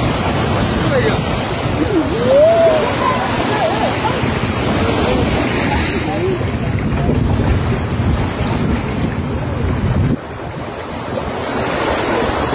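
An animal splashes as it swims through choppy water.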